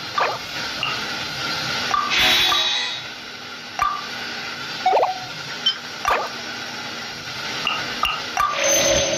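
Soft menu clicks and chimes sound as options are selected.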